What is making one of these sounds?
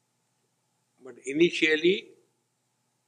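An elderly man speaks briefly into a microphone.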